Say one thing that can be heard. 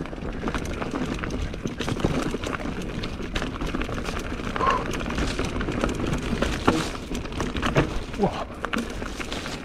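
Mountain bike tyres roll and crunch over a rough dirt trail.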